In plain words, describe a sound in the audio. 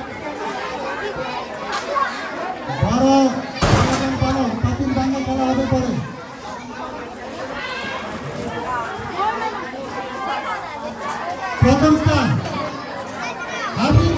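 Children chatter and call out nearby, outdoors.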